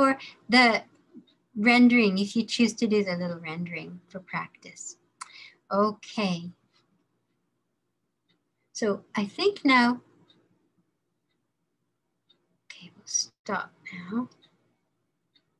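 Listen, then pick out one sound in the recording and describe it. A woman speaks calmly through an online call, pausing now and then.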